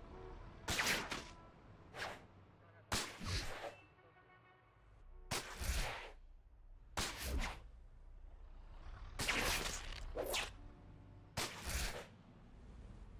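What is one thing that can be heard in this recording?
Webs shoot and swoosh through the air again and again.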